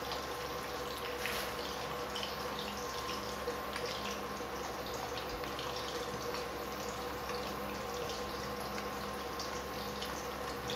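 Eggs sizzle and crackle in a frying pan.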